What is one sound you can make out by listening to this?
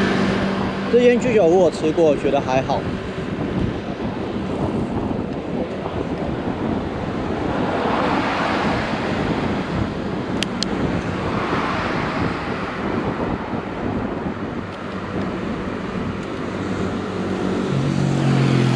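Wind rushes steadily past a moving rider.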